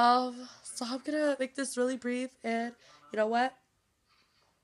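A young woman sings loudly and close by.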